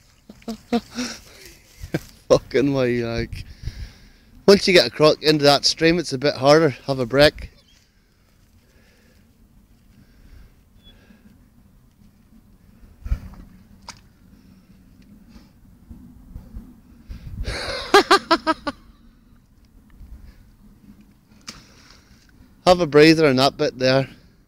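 Boots squelch and suck through deep mud.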